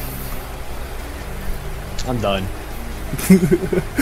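A young man talks and laughs over an online call.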